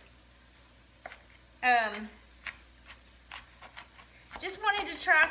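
A knife taps on a cutting board as food is chopped.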